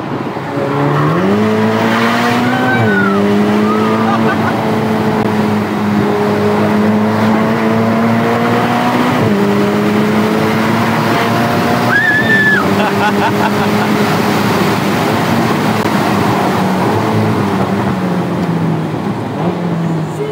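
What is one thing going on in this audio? A car engine revs up and drops in pitch with each gear change.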